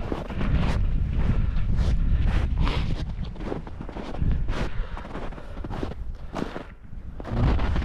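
Gloved hands rustle against thick fabric.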